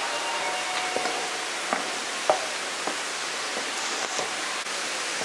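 Footsteps tap on hard stairs.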